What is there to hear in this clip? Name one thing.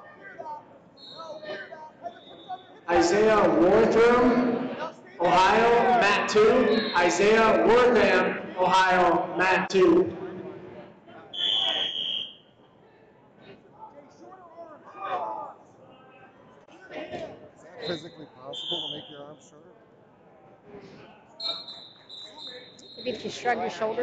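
A referee's whistle shrills sharply in a large echoing hall.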